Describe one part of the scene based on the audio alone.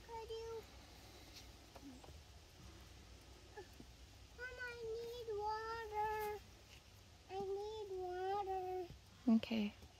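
A young child talks softly in a high voice.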